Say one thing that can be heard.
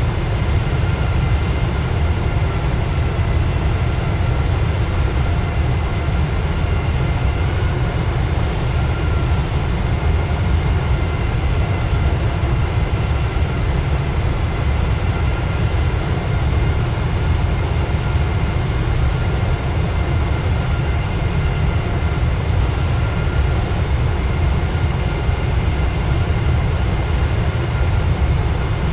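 Air rushes past the plane in a steady low rumble.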